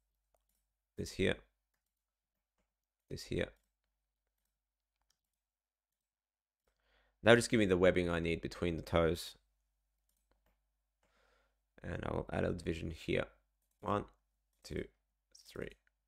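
A young man talks casually in short bursts, close to a microphone.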